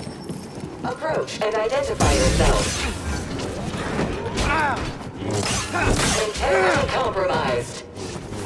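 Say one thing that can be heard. A robotic voice speaks flatly.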